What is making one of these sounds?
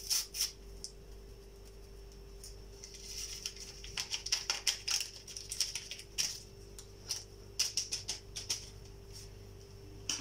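A metal spoon clinks and scrapes against a plate.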